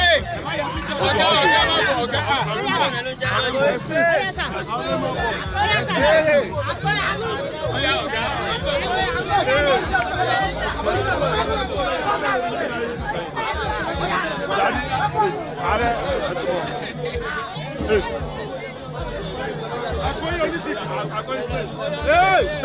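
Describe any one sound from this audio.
A crowd of men and women chatters loudly all around, outdoors.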